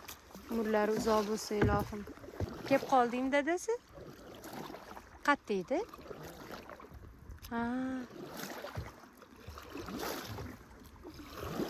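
A paddle splashes and dips in water.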